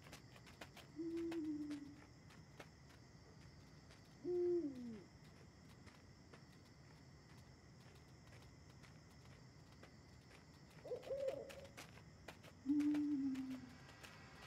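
A fox gives short, whining cries now and then.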